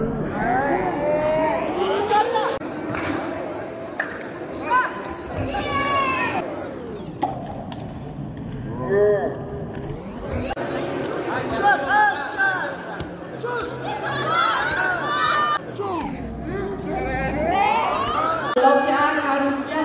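Men and women in a crowd shout and cheer in a large echoing hall.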